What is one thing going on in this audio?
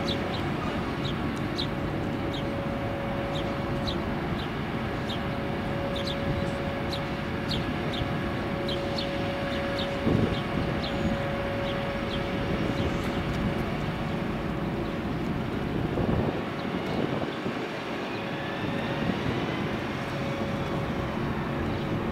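A tram rumbles along its rails at a distance.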